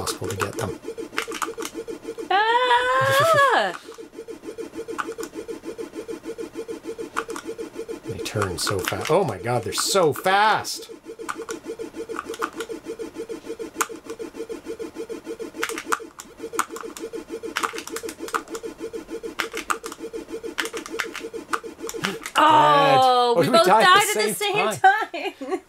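Retro video game bleeps and tones play steadily.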